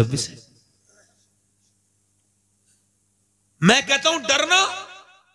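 A man chants in a melodic voice through a microphone.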